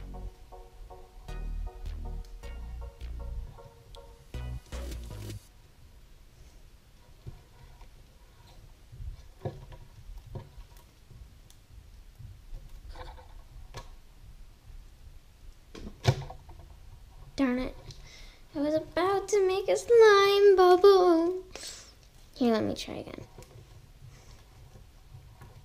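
Sticky slime squishes and crackles.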